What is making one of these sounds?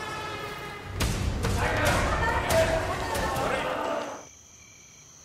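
A crowd of people runs with thudding footsteps.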